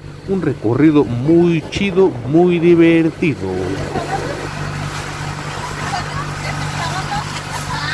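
Water splashes and churns in a boat's wake.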